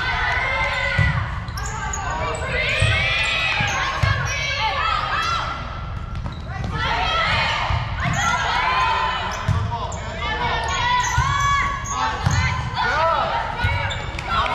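A volleyball thumps off hands and arms again and again.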